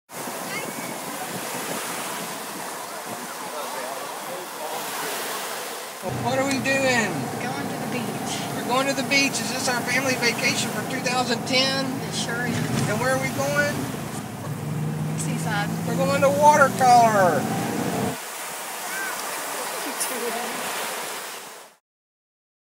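Small waves wash gently onto a beach.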